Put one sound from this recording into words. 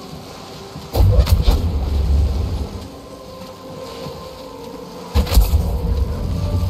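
Electricity crackles and buzzes over water.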